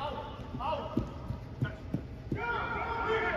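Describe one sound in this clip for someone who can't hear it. A ball thuds off players' feet.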